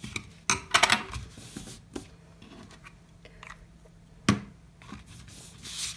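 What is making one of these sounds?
A plastic glue bottle is picked up and knocks on a table.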